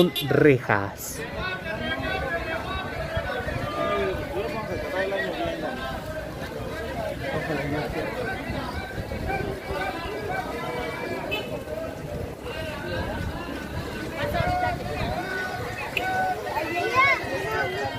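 A crowd of people chatters in a busy outdoor street.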